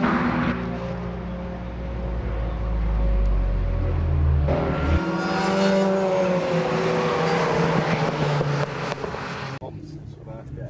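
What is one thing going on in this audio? Car engines roar past on a racetrack outdoors.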